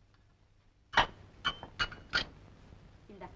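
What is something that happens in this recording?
A cup clinks against a saucer.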